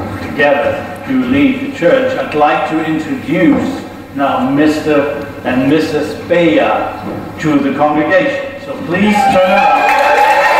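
A man speaks clearly and steadily into a microphone in an echoing hall.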